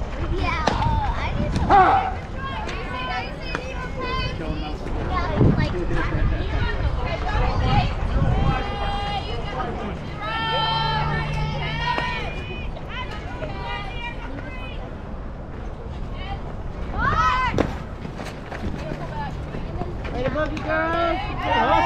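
Young women call out and cheer nearby outdoors.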